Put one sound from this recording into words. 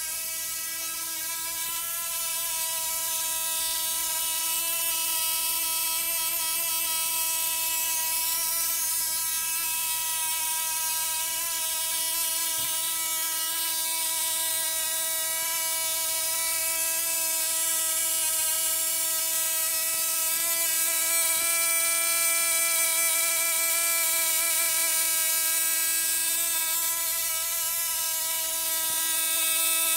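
A high-voltage coil whines with a steady, high-pitched hum.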